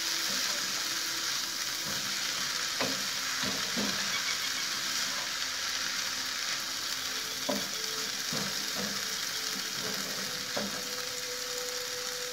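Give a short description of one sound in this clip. Vegetables sizzle steadily in a hot pan.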